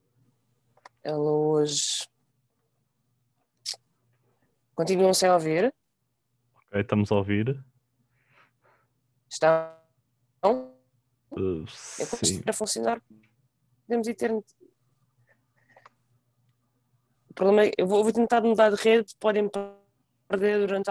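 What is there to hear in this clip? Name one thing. A young woman speaks calmly in short bursts over an online call.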